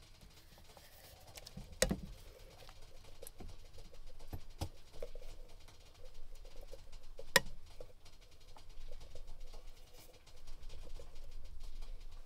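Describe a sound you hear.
A metal can knocks and scrapes against the rim of a metal pan.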